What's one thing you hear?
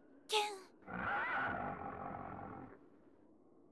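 A horse whinnies loudly.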